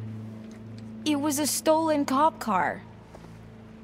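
A young woman shouts back angrily.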